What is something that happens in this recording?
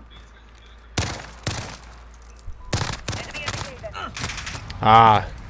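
Gunshots crack sharply several times.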